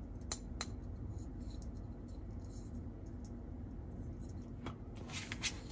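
Plastic toy pieces click and clack as they are handled.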